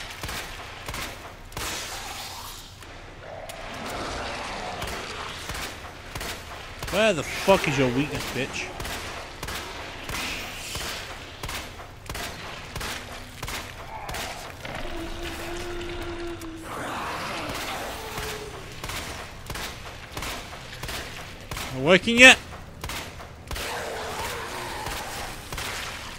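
Gunshots crack repeatedly.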